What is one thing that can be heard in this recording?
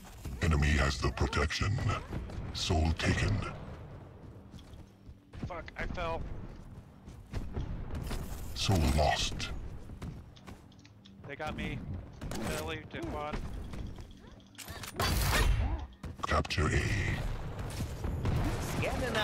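Gunfire bursts out in rapid shots.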